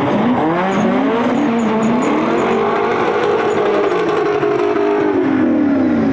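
Tyres squeal on wet tarmac.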